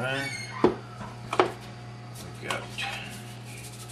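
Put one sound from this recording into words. A jar knocks on a hard surface a few times.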